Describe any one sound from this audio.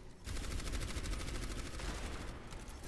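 Rapid video game gunfire crackles.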